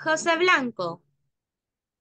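A woman speaks briefly with animation over an online call.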